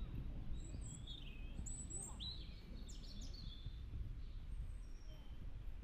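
Wind rumbles outdoors against the microphone.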